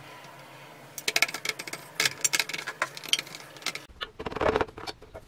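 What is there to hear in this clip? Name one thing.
A brush scrubs against metal.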